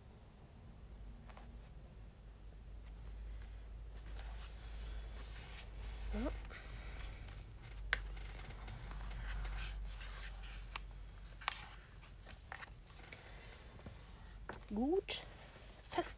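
Stiff paper pages rustle and flip as they are turned by hand.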